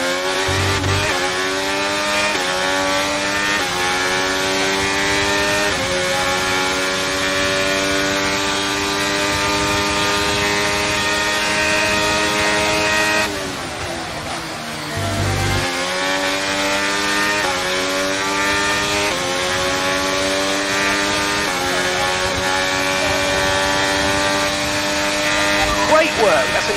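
A racing car engine screams loudly, its pitch climbing through each gear and dropping with each shift.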